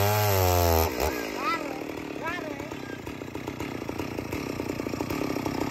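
A chainsaw idles with a fast, steady putter.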